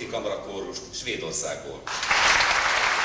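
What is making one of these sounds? A male choir sings in a large echoing hall.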